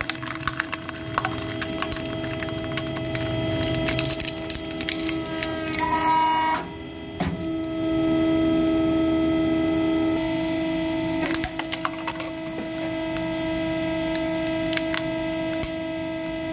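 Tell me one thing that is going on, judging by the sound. Glass and metal crack and crunch under a hydraulic press.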